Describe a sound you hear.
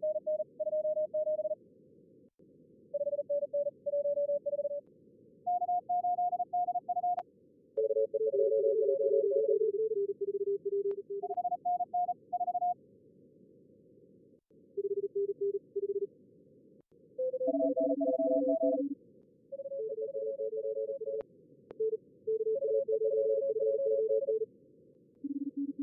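Morse code beeps in short bursts over a radio receiver.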